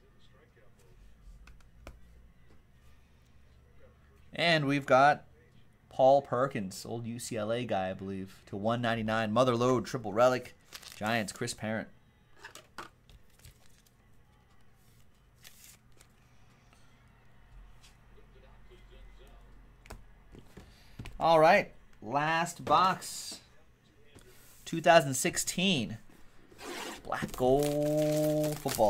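Plastic card sleeves crinkle in hands.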